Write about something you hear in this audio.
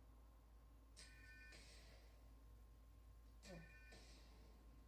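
A handheld game plays short electronic chimes.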